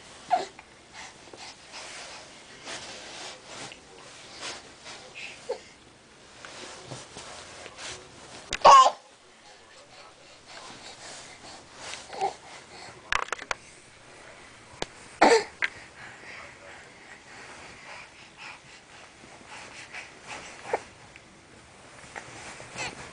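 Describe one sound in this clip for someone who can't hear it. A baby babbles and squeals close by.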